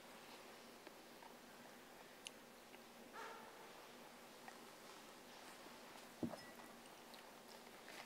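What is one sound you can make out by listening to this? An elderly man murmurs a prayer quietly in an echoing hall.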